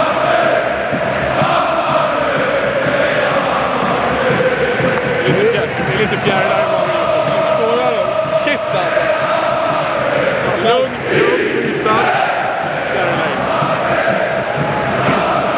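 A large crowd chants and sings loudly in an echoing stadium.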